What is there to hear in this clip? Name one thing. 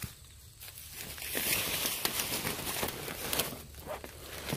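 Leaves rustle as plants are brushed aside.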